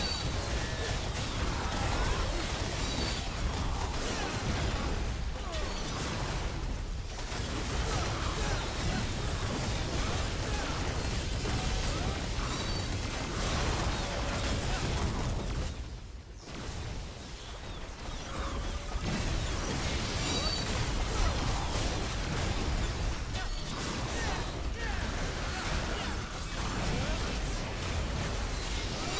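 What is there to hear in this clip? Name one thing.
Magic spells and weapon hits crackle and boom in a busy battle.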